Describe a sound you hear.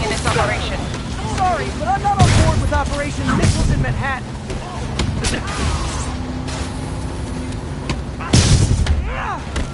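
Punches and kicks thud in a fight.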